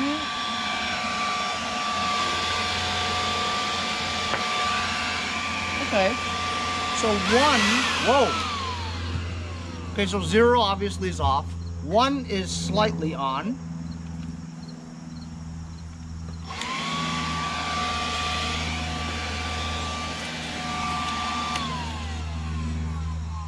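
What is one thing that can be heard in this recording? A leaf blower whirs steadily at close range.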